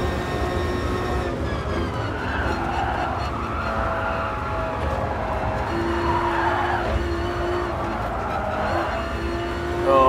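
A race car engine roars, its pitch falling and rising as the car slows and speeds up.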